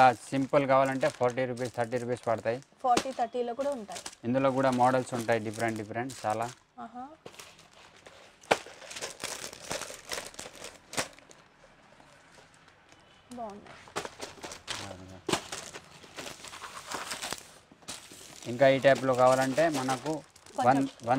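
Plastic boxes clatter and tap as they are handled.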